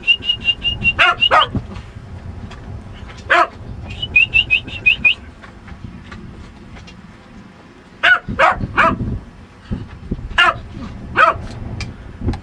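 A small dog barks sharply in short bursts.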